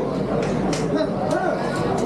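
Boxing gloves thud against each other.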